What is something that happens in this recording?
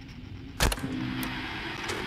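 Static hisses and crackles.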